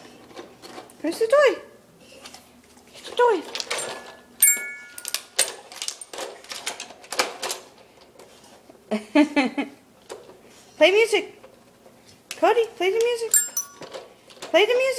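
A dog whines in high, rising and falling cries.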